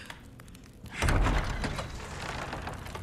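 Heavy wooden doors creak and thud open.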